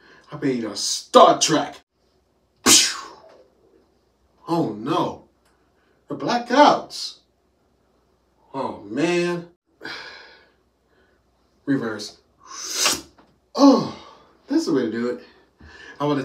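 A young man speaks with animation, close by, in short bursts.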